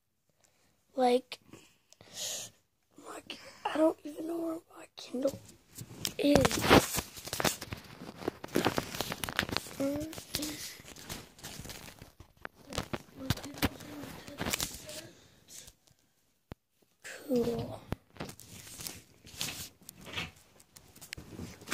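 A young boy talks close to a microphone.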